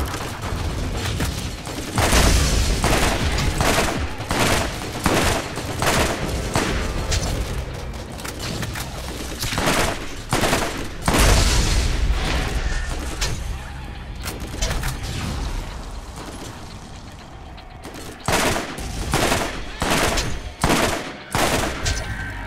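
Rifle shots fire in quick bursts, booming loudly.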